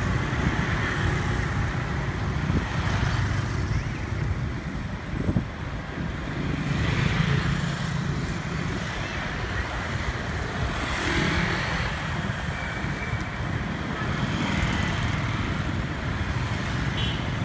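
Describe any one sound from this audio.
Motor scooters ride past on a road.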